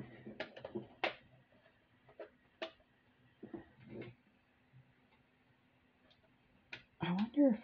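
Beads click softly as a thin wire is threaded through them.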